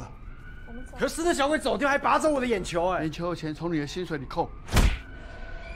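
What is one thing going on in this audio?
A middle-aged man speaks loudly and angrily.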